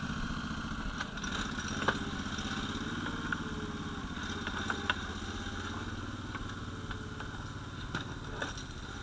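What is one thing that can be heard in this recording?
Metal clanks and knocks as a machine's blade shifts.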